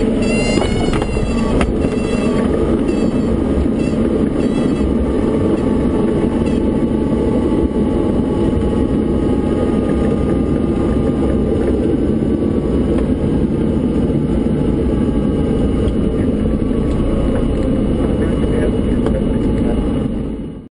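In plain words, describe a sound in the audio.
A small plane's propeller engine roars loudly and steadily from close by.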